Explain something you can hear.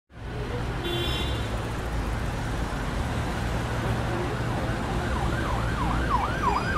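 Busy city traffic rumbles steadily in the rain.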